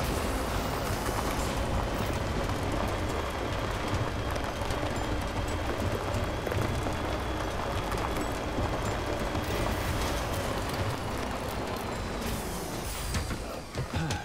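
A truck engine rumbles steadily as the truck drives over rough ground.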